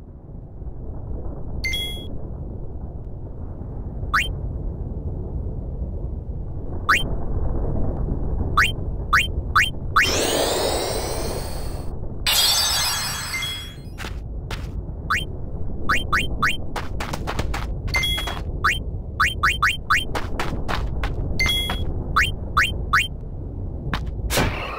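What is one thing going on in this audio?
A low, dark rumble drones steadily.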